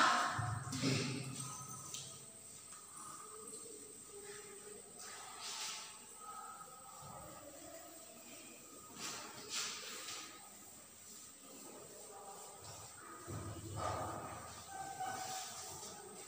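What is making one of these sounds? A cloth duster rubs and swishes across a chalkboard.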